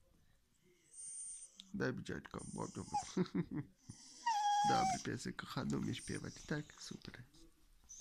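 A dog sniffs and snuffles right at the microphone.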